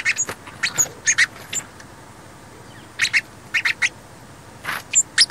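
Small birds chirp and peep in short bursts close by.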